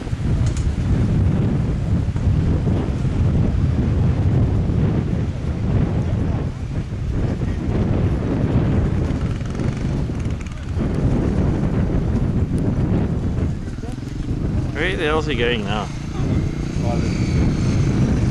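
A dirt bike engine revs and putters close by.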